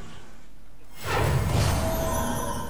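A magical burst booms and sizzles.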